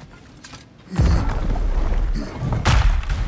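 Heavy doors grind open loudly.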